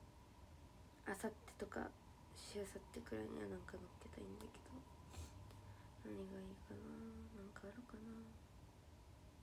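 A young woman speaks softly and close up.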